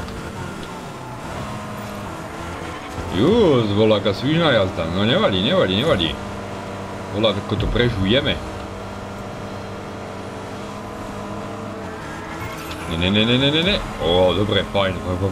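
A young man talks calmly into a nearby microphone.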